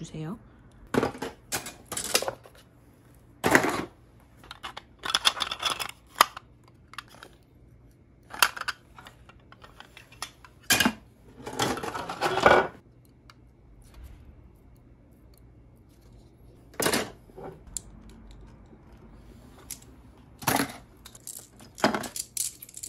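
Hard plastic pieces clack and rattle as they are handled.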